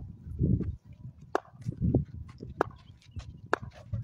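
A cricket bat knocks a ball.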